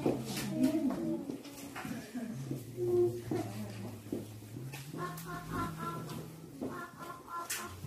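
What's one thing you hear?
A small ensemble of strings and flute plays a slow piece.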